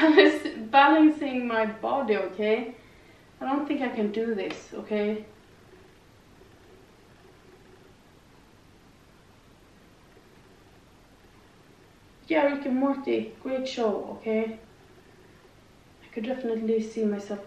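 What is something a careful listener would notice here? A young woman speaks calmly and clearly, close by, with pauses.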